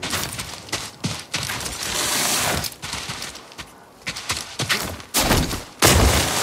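Footsteps crunch quickly on loose gravel and dirt.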